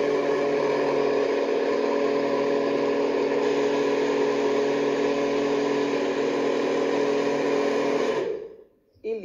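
A blender whirs loudly and steadily, then stops.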